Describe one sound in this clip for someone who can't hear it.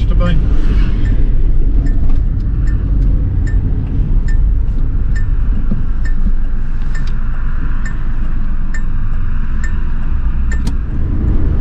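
A turn signal ticks steadily inside the car.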